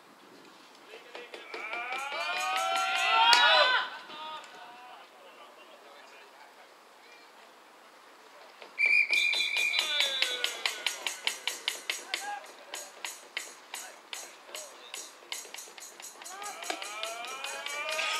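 A group of young players shout and cheer loudly outdoors.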